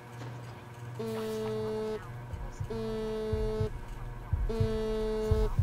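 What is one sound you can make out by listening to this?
A phone rings with a repeating electronic tone.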